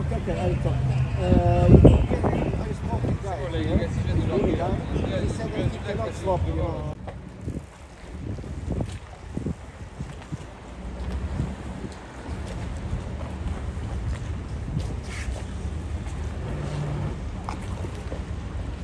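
Water laps gently against boat hulls.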